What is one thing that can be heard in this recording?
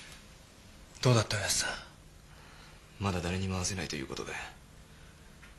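A man speaks quietly in short phrases.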